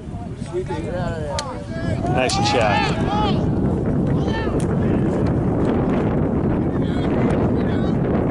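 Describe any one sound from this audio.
Lacrosse sticks clack together.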